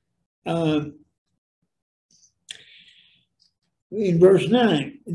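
An elderly man speaks calmly into a nearby microphone.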